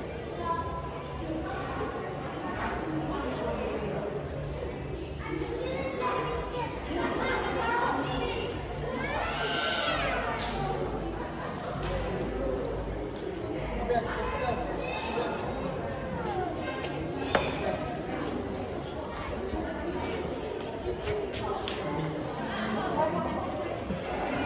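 A crowd of shoppers chatters in a large echoing hall.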